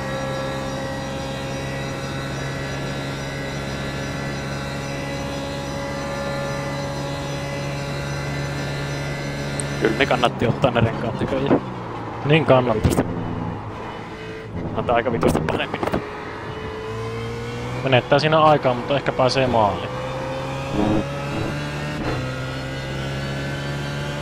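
A racing car engine drones steadily at high revs, its pitch slowly shifting.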